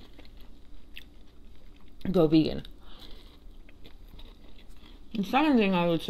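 A young woman chews food with soft mouth sounds close to a microphone.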